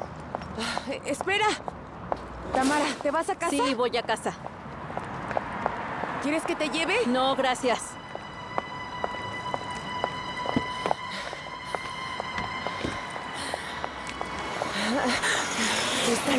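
High heels click on pavement.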